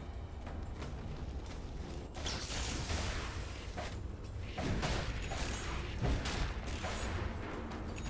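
Combat sounds clash and crackle as magic spells burst.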